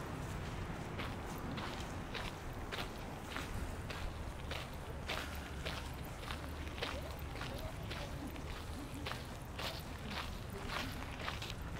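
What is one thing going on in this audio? Footsteps crunch on gravel close by at a steady pace.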